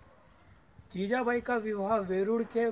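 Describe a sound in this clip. A young man speaks close by, calmly.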